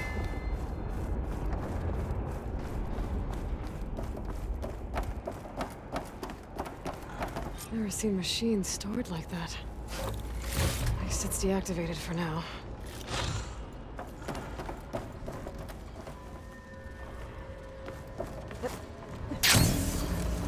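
Footsteps tap steadily on a hard metal floor.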